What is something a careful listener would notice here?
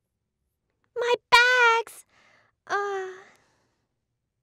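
A young woman cries out in dismay, close by.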